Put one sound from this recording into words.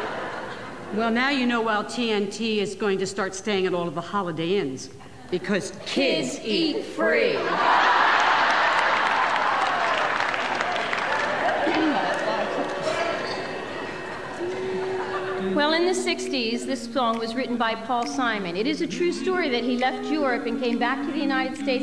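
A woman speaks with animation into a microphone in an echoing hall.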